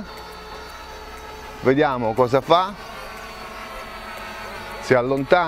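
A small drone's motors hum with a steady high whine.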